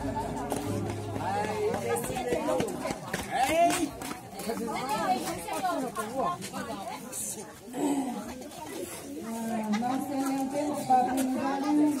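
A crowd of men and women talk over one another outdoors.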